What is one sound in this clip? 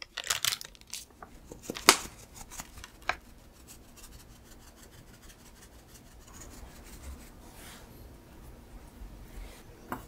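Cocoa powder softly patters as it is sifted.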